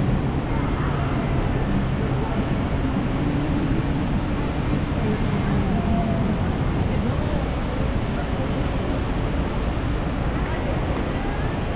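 A crowd of passersby murmurs in the distance.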